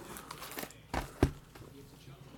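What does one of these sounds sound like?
Cardboard boxes knock against each other.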